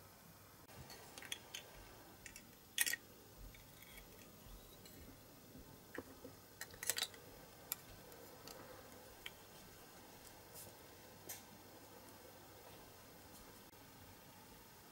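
Metal tweezers click and scrape against a plastic jar.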